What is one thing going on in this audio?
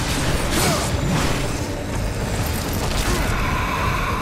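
Heavy blows land with wet, crunching impacts.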